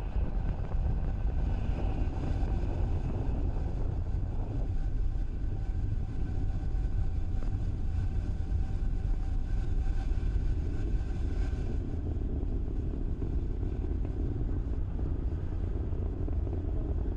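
A rocket engine roars with a deep, steady rumble.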